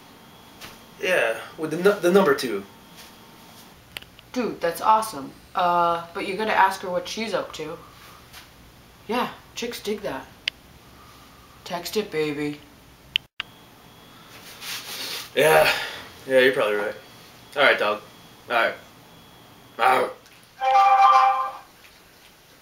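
A young man talks animatedly into a phone close by.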